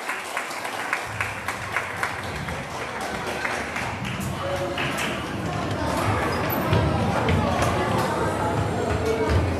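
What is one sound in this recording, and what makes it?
A crowd of children chatters and cheers.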